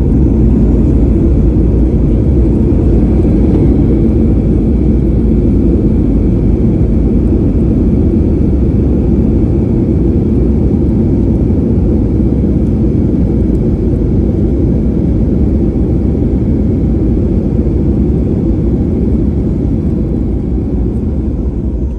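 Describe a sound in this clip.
A jet's engines roar loudly and steadily inside an aircraft cabin.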